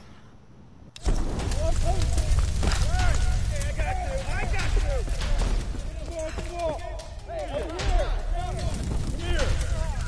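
A fire roars and crackles loudly.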